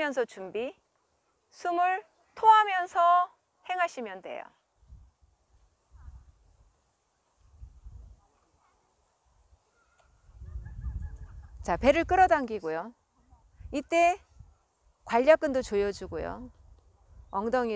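A woman speaks calmly and clearly, giving instructions close by.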